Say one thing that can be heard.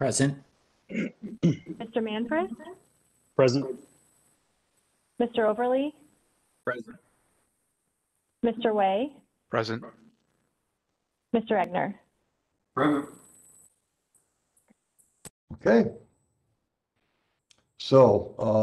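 A man speaks in short, halting phrases over an online call.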